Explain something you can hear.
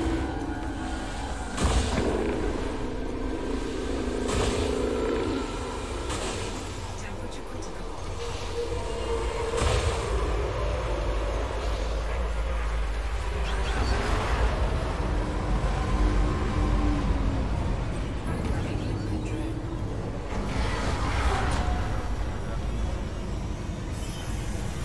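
A spacecraft engine hums low and steadily.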